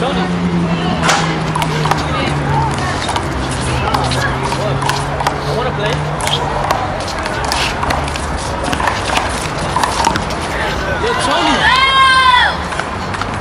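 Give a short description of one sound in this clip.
A handball smacks sharply against a wall, again and again.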